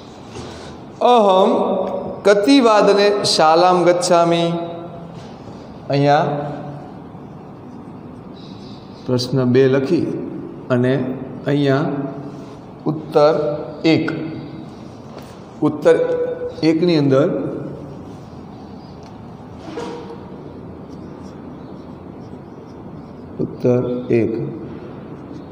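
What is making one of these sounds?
A man speaks calmly into a clip-on microphone, pausing often.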